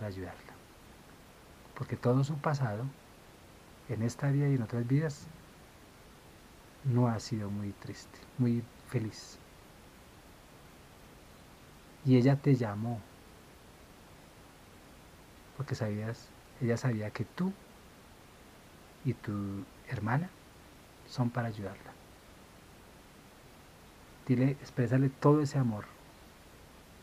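A man speaks calmly close by, in short phrases with pauses.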